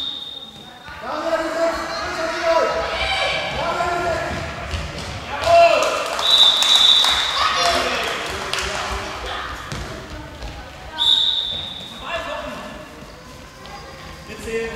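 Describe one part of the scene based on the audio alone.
A handball thuds against the floor.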